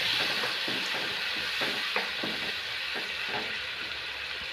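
A ladle scrapes and taps against a pan.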